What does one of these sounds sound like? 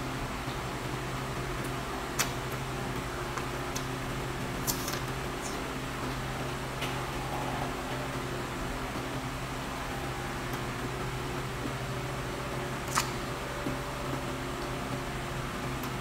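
An elderly woman chews and smacks her lips close to a microphone.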